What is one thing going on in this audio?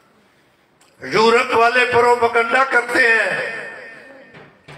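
An elderly man recites in a long, melodic chant through a loudspeaker, his voice ringing and slowly fading.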